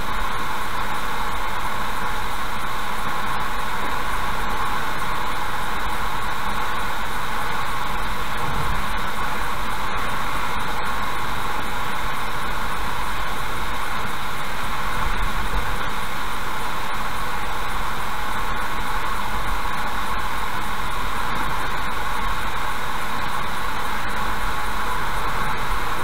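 A car drives steadily along a road, with a steady hum from the tyres and engine.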